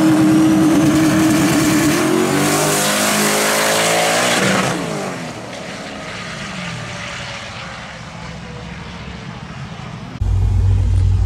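A turbocharged V8 drag car accelerates away at full throttle and fades into the distance.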